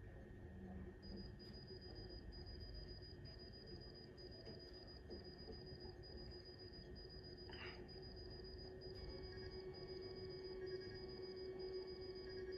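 A monitor beeps steadily through a television loudspeaker.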